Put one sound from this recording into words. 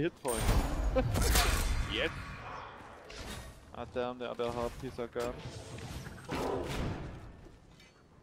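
Game weapons swish and strike in short bursts of fighting.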